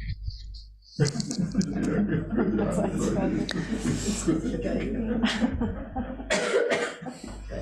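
A small group of people laughs together.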